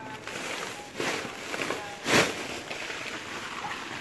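Dry roots tumble out of a sack and land in a pile.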